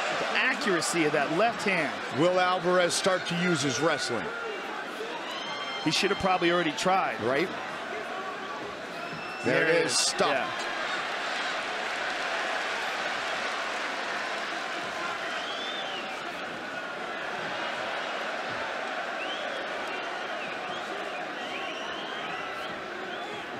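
A large crowd roars and cheers steadily in a big echoing arena.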